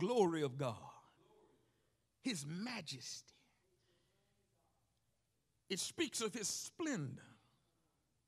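A man preaches with animation into a microphone, in short bursts with pauses, in a large echoing hall.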